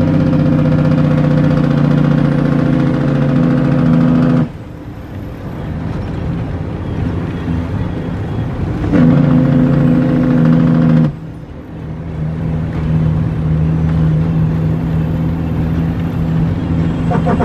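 A vehicle's engine hums steadily from inside the cab, rising and falling as it changes speed.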